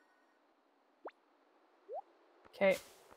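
Short menu blips and swishes sound.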